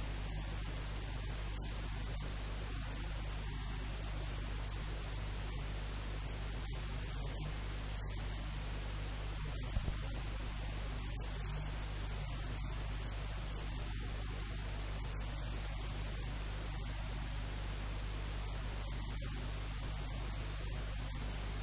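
A young man speaks quietly and calmly into a close microphone.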